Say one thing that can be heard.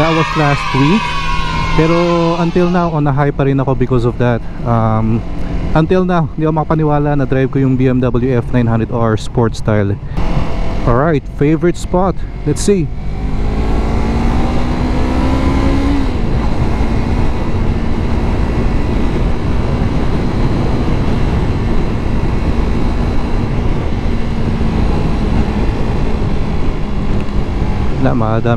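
A motorcycle engine revs up and down as gears shift.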